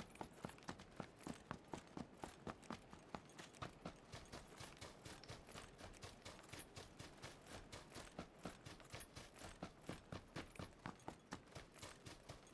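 Running footsteps thud on grass and dirt.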